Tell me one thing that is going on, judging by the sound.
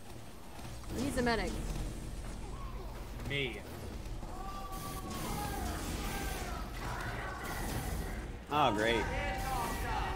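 A flamethrower roars in bursts.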